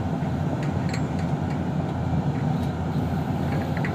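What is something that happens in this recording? An excavator bucket scrapes into dirt and stones.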